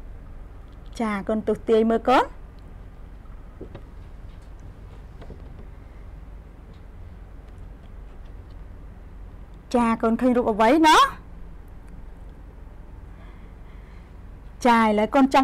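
A young woman speaks clearly and expressively into a close microphone, in short bursts.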